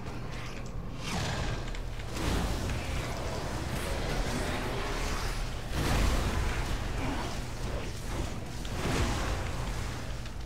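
Magic spells crackle and burst in a noisy fight.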